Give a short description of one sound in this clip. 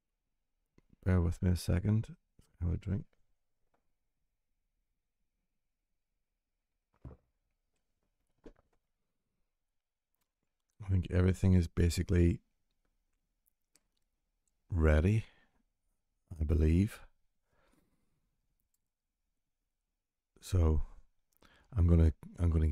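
A man talks close to a microphone in short, thoughtful bursts with pauses.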